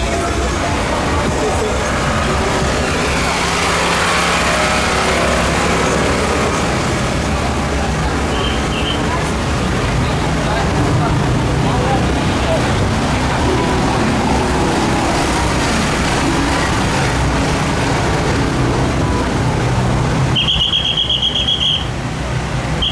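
A truck engine rumbles slowly by.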